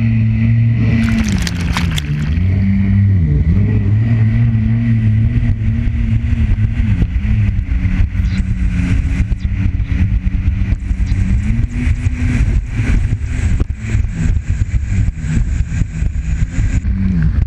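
A jet ski engine drones loudly, its pitch rising and falling.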